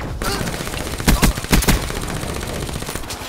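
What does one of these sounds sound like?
Automatic gunfire rattles in a rapid burst.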